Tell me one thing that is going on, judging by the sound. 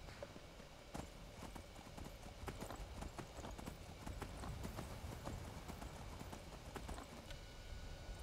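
A horse's hooves clop quickly along a path.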